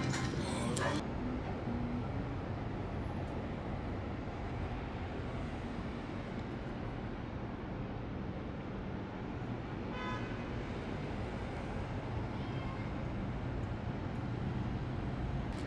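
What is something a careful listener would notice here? A steady city hum drifts up from far below, outdoors.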